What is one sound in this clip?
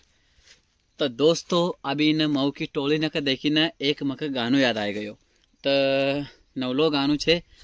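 A young man talks with animation close to the microphone.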